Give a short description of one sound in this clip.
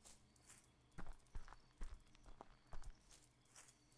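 Footsteps crunch slowly on leaves and dirt.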